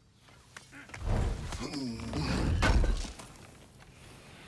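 A heavy wooden chest creaks open with a loud rushing whoosh.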